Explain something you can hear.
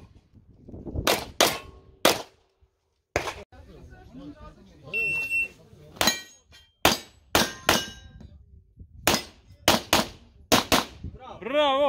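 Pistol shots crack outdoors in rapid bursts, echoing off the hillside.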